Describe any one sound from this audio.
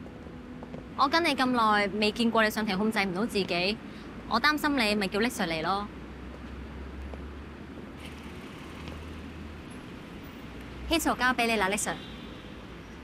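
A young woman speaks calmly and clearly close by.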